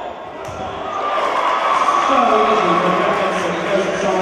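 A crowd of spectators cheers and shouts, growing louder.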